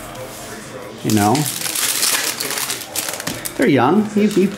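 A plastic wrapper crinkles and tears as it is opened.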